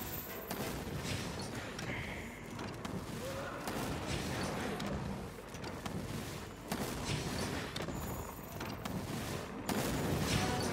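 A blade swishes through the air with a magical whoosh.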